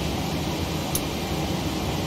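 A cockpit switch clicks sharply.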